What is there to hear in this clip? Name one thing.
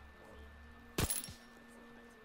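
A suppressed pistol fires a shot.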